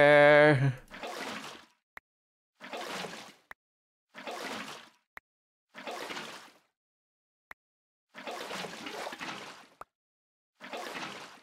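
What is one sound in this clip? Water sloshes and splashes from a bucket, again and again.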